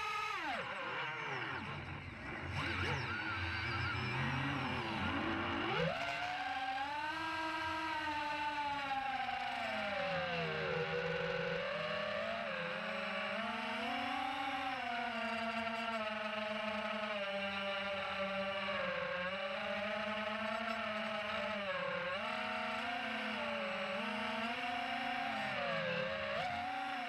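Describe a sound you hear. A drone's motors whine steadily, rising and falling in pitch as it speeds up and slows down.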